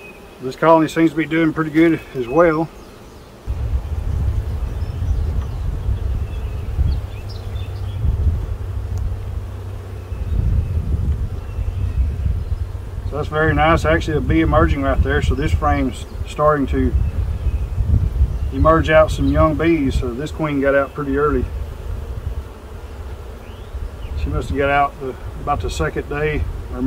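A man speaks calmly nearby in short bursts.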